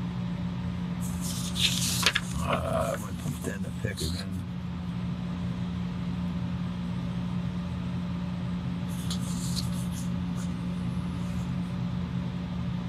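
A pen scratches and scrapes on paper.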